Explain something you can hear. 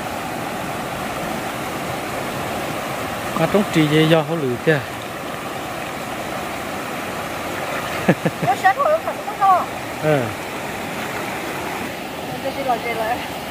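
A river flows and gurgles over rocks nearby.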